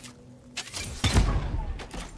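A sniper rifle fires a single shot.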